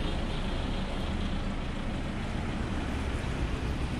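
A car drives away along the road.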